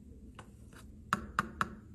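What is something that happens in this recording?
A metal spoon taps and scrapes against a plastic container.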